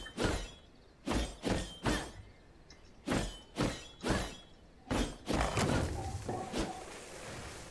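Heavy weapon swings whoosh and strike in quick bursts.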